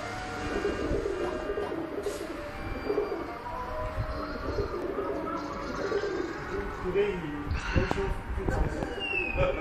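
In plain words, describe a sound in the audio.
Video game music and sound effects play from a television nearby.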